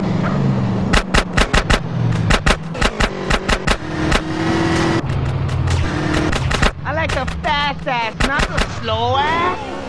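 A pistol fires a rapid series of sharp shots.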